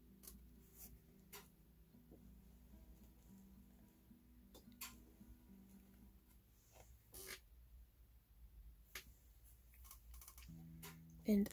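A small wooden model knocks and creaks softly as it is handled.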